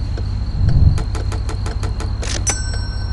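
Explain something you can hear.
Game menu chimes ring out in quick clicks.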